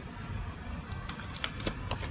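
Small objects click and tap as hands handle them.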